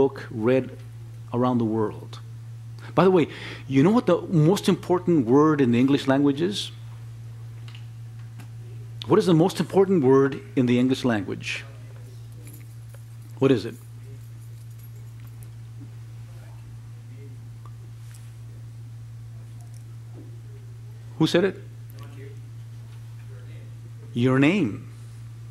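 An elderly man lectures with emphasis, heard through a microphone in a quiet room.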